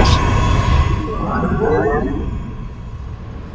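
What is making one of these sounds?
A young man talks into a close microphone.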